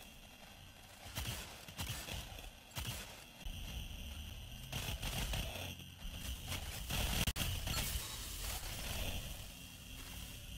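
Video game guns fire in rapid bursts.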